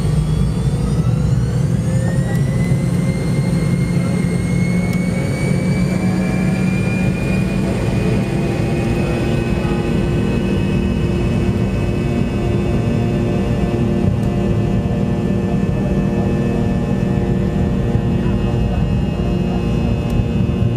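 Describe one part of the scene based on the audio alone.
Airliner wheels rumble along the runway, heard from inside the cabin.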